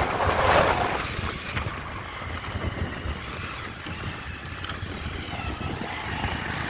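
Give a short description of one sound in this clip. Tyres rumble and bump over a rough dirt road.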